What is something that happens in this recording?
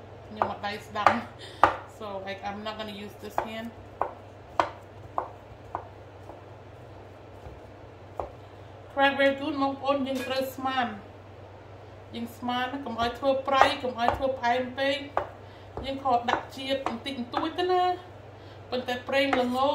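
A spatula scrapes and taps on a wooden cutting board.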